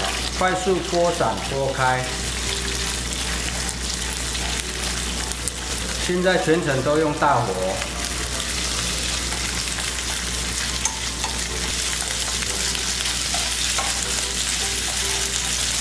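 Chopsticks scrape and tap against a pan.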